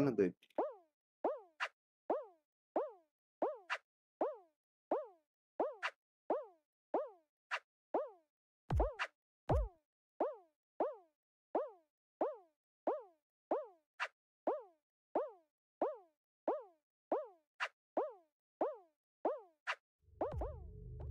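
Laser beams zap with quick, falling electronic chirps in a steady rhythm.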